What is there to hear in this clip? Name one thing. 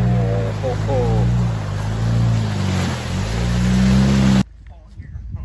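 Water splashes under tyres.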